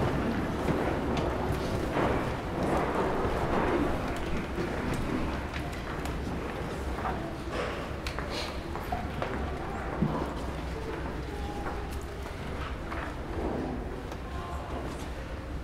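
A man speaks calmly and slowly into a microphone in a large echoing hall.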